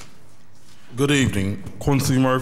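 A man speaks into a microphone at close range, calmly and clearly.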